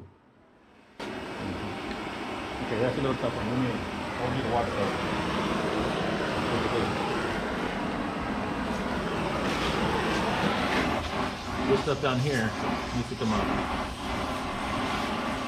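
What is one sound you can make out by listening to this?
A cutting torch roars and crackles as it cuts through steel.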